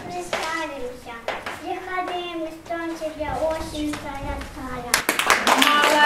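A young girl recites a poem aloud in a lively, sing-song voice.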